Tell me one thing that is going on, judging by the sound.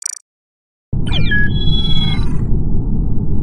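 A short electronic swooping chime rings out.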